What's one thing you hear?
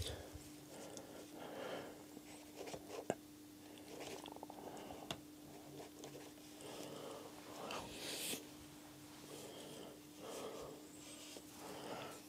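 A pen scratches lightly on paper.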